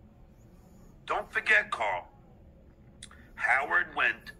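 A middle-aged man speaks with animation through a microphone on an online call.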